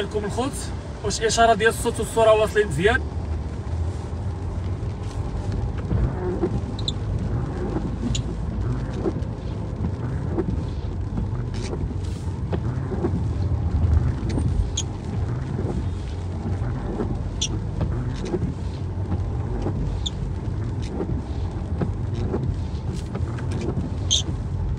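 Raindrops patter lightly on a windscreen.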